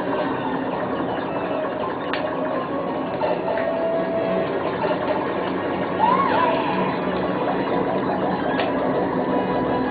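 Electronic arcade game music and sound effects play through a small loudspeaker.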